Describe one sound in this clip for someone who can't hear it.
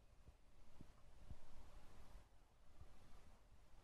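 A small plastic device is handled with soft knocks.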